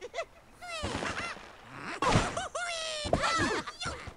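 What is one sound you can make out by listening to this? A slingshot stretches and snaps as a bird is launched.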